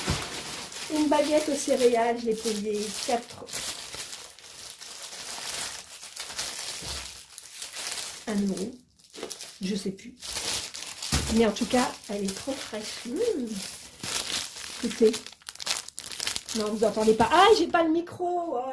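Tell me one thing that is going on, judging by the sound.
A middle-aged woman talks with animation close to the microphone.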